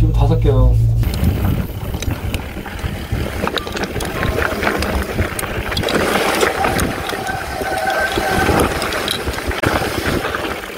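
Bicycle tyres rattle and crunch over a dirt trail.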